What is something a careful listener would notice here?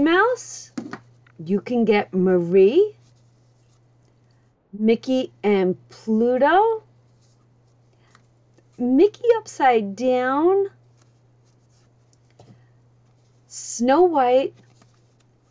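Paper stickers rustle softly as they are handled and peeled.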